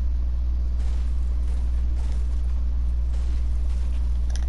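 A pickaxe chops repeatedly into a tree trunk.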